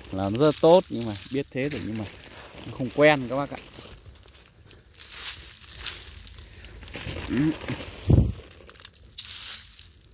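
Water sprays in a hissing stream onto leaves and the ground.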